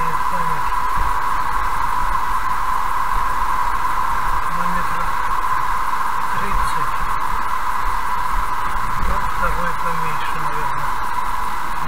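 Tyres hum steadily on a smooth road as a car drives along.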